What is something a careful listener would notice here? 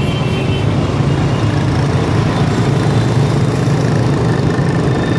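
A scooter engine rumbles close by as the rider pulls away.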